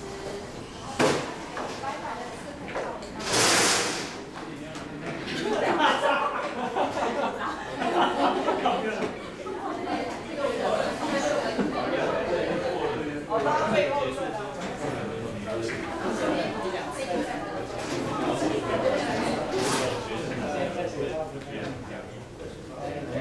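Many men and women chatter together.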